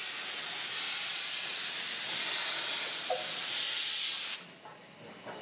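A steam locomotive hisses loudly with escaping steam.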